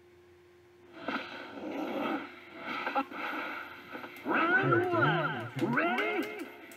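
Game sound effects whoosh and burst through a television speaker.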